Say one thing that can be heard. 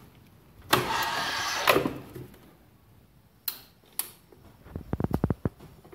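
A plastic knob clicks as it is turned.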